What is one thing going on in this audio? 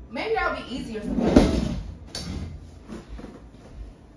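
A chair creaks and scrapes as someone sits down.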